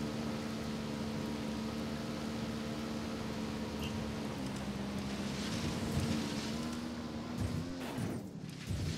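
A motorbike engine hums steadily.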